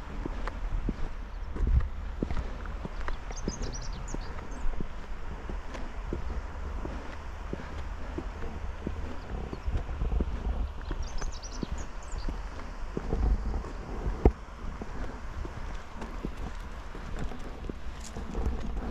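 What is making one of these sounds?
A bicycle rattles and clicks over small bumps.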